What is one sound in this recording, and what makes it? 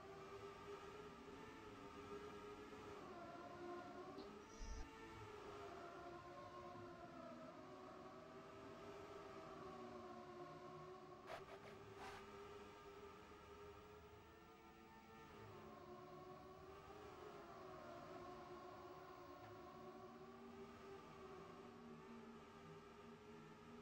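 A race car engine whines steadily, rising and falling in pitch as it speeds along.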